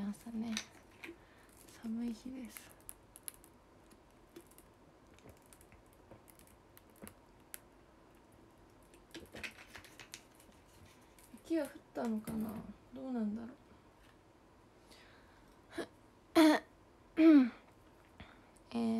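A young woman speaks softly and close by, in short bursts with pauses.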